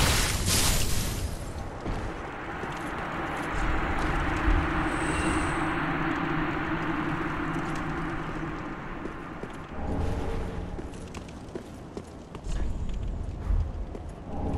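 Armoured footsteps clank on stone as a knight runs.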